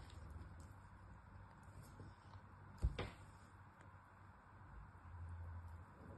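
Small pieces of soap snap and crumble between fingers.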